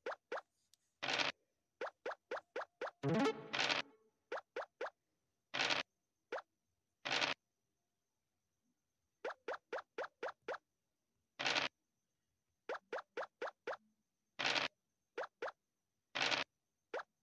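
A die rattles briefly as it rolls.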